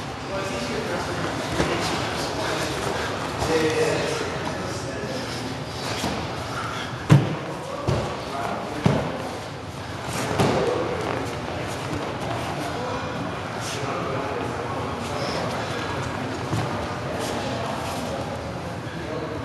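Two men grunt and breathe hard while grappling.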